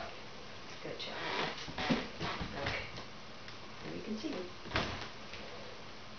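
A puppy's paws patter and scrabble on a wooden floor.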